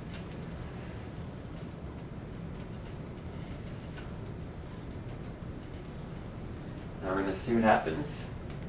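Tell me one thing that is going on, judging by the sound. A metal spatula presses and scrapes on a griddle.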